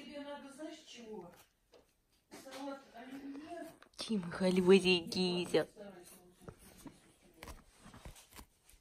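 A cat chews and gnaws on a crinkly toy close by.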